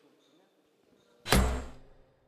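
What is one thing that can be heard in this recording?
Glass and china clink softly.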